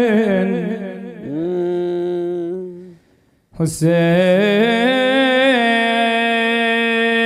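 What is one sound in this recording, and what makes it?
A young man chants in a long, sustained melodic voice through a microphone, pausing briefly for a breath.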